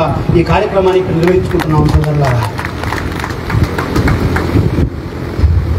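A man speaks forcefully into a microphone over a loudspeaker, echoing outdoors.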